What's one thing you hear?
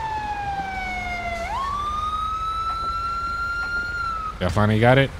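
An ambulance siren wails and winds down.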